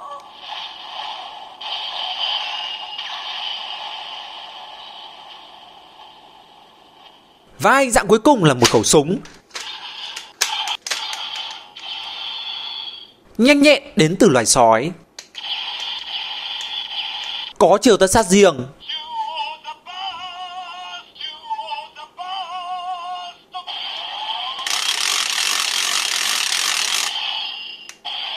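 A toy blaster plays loud electronic music and sound effects through a small speaker.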